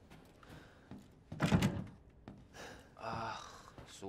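A locked door rattles as its handle is tried.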